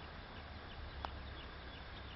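A putter taps a golf ball with a soft click.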